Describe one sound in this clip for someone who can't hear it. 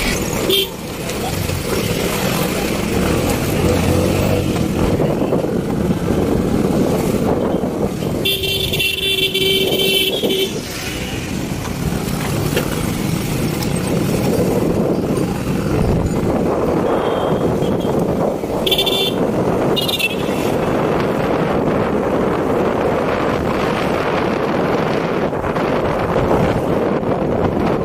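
Motorcycles putter past close by.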